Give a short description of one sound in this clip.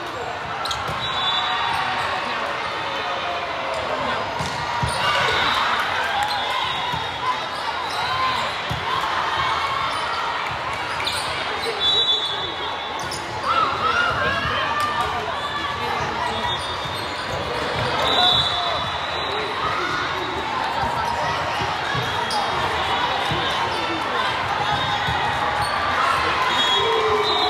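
Shoes squeak on a gym floor.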